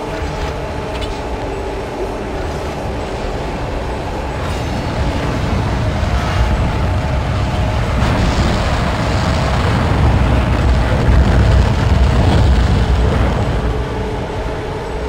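A deep mechanical hum drones steadily and swells louder midway.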